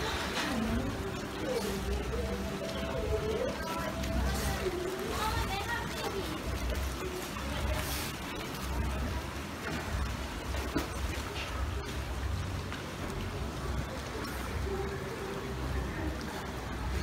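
Water laps and splashes gently in a pool.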